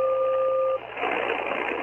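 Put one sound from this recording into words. A radio receiver gives a short, steady two-tone beep.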